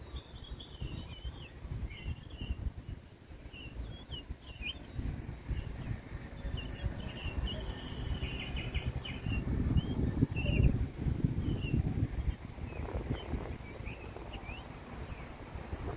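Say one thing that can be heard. Wind blows in gusts and rustles the leaves of a tree.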